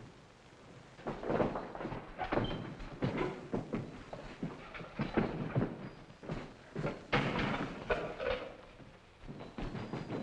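Men scuffle with heavy thumps and knocks.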